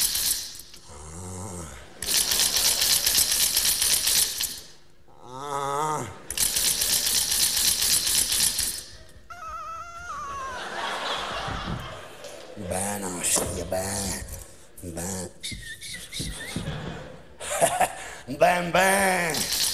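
A man sings through a microphone.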